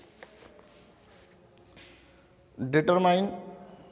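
Paper pages rustle as a book is handled.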